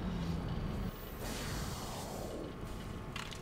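A spaceship whooshes as it shoots out of a swirling tunnel.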